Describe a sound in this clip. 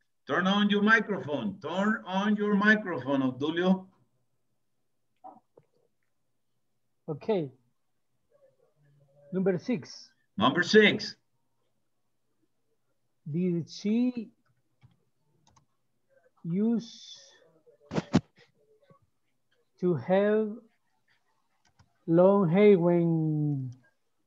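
A man speaks calmly over an online call, with pauses.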